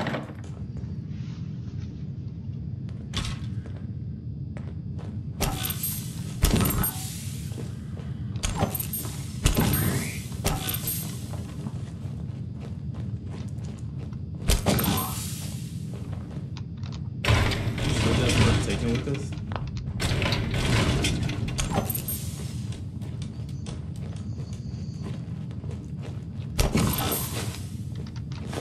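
Footsteps crunch over wooden debris.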